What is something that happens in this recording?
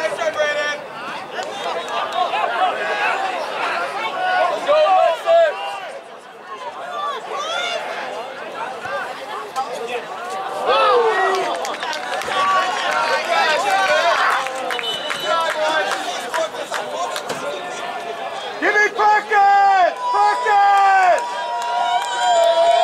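A crowd of spectators cheers and shouts nearby outdoors.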